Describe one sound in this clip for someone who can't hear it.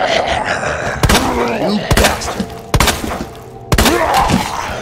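Loud gunshots from a pistol ring out several times, each with a short echo.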